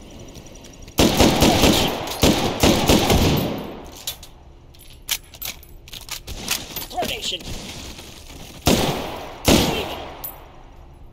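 A rifle fires loud rapid bursts that echo off hard walls.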